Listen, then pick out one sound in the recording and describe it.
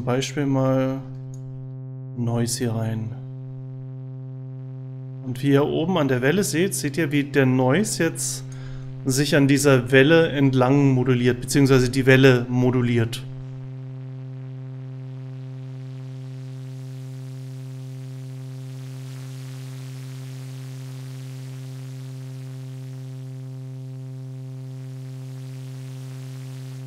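A synthesizer plays a steady low buzzing tone.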